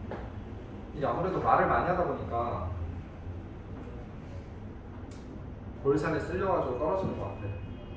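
A young man speaks calmly through a mask, close by.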